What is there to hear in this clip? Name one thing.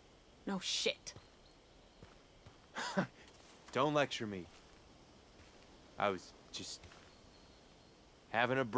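A young man talks into a close microphone in short bursts.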